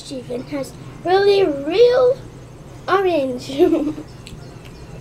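A young girl talks with animation, close to a microphone.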